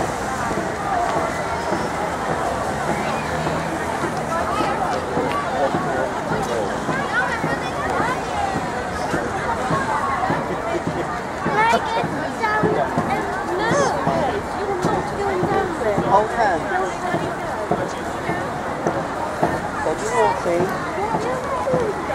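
A crowd chatters outdoors nearby.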